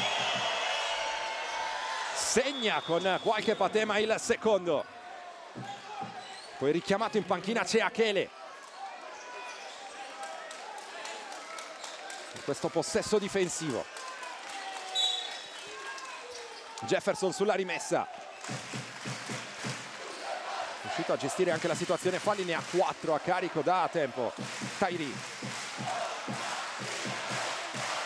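A crowd murmurs and cheers in a large echoing arena.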